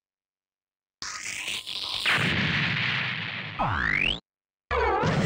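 Energy beams fire with a sweeping whoosh.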